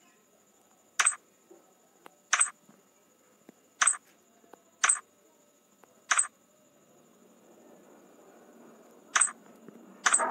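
Short, sharp electronic blips sound again and again at uneven intervals.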